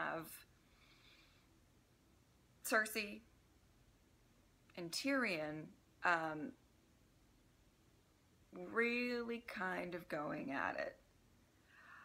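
A young woman talks calmly and expressively close to a microphone, with pauses.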